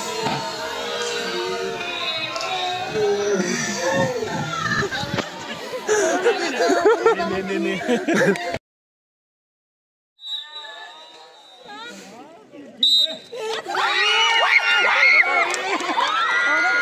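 A crowd of children shout and cheer outdoors.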